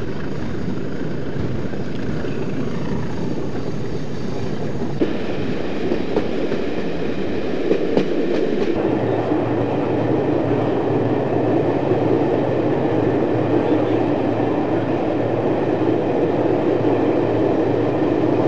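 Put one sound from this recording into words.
A train engine rumbles steadily as the train moves along the track.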